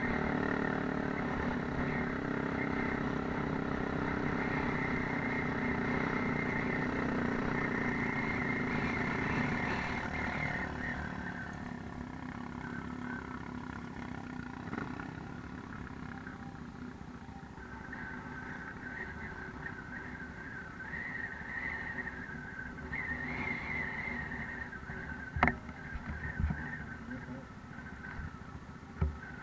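A quad bike engine drones steadily.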